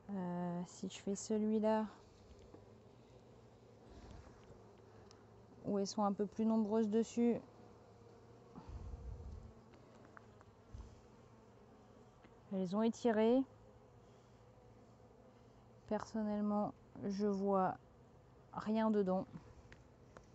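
A woman speaks calmly and close into a microphone, in short phrases with pauses.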